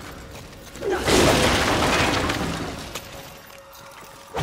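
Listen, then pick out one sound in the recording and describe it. A loud crashing burst of fighting blows rings out and fades.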